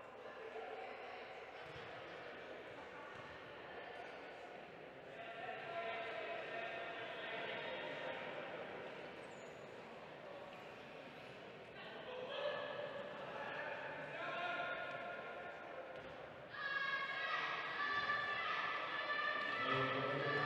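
Wheelchair wheels roll and squeak on a hard court in a large echoing hall.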